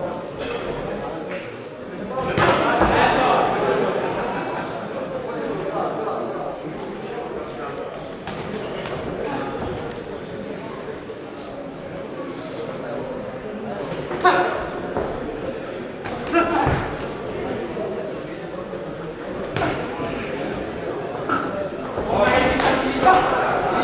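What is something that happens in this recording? Punches thud against gloves and bodies.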